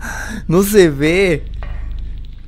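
A young man exclaims with animation close to a microphone.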